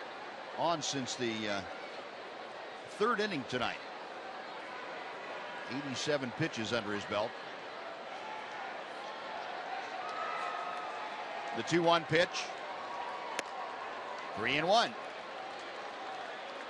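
A stadium crowd murmurs steadily outdoors.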